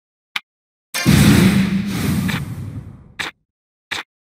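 A crackling thunder blast strikes with a loud roar.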